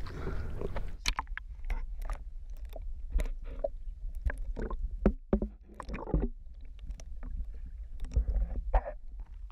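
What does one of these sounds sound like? Water gurgles and bubbles, muffled underwater.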